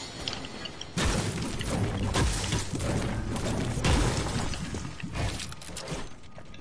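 A pickaxe strikes rock.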